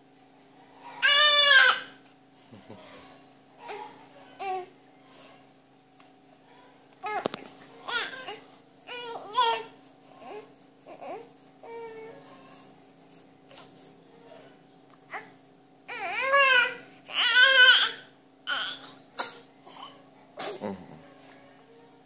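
An infant babbles and squeals close by.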